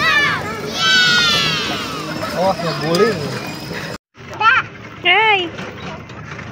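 Young children squeal and chatter excitedly close by.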